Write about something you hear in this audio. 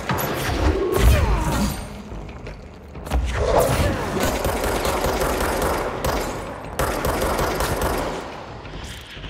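Gunfire and explosions bang and crackle in a video game.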